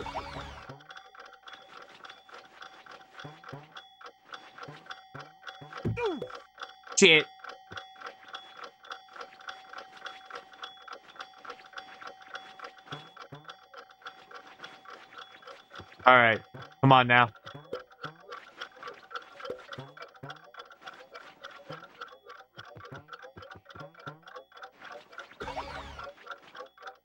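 Bouncy electronic game music plays with a quick, steady beat.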